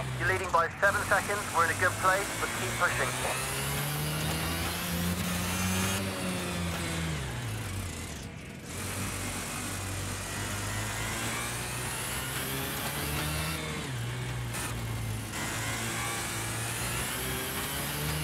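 A small kart engine buzzes steadily, rising and falling in pitch as it speeds up and slows down.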